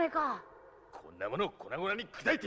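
A man declares angrily.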